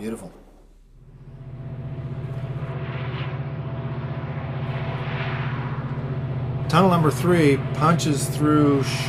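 A model train's motor hums steadily as the train rolls along the track.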